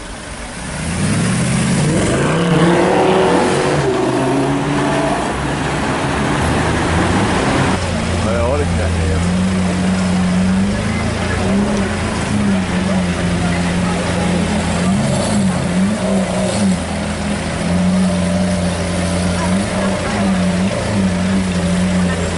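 A sports car engine rumbles and revs loudly up close.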